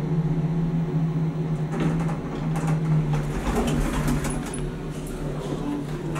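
Lift doors slide open.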